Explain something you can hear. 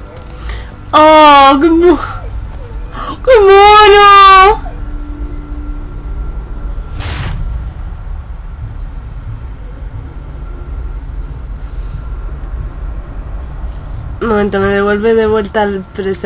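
A wolf whines and howls loudly.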